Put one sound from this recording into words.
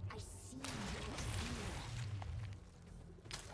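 A dark magic spell bursts with a crackling whoosh.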